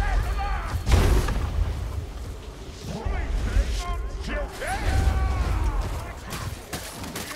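A sword slashes and clashes against enemies.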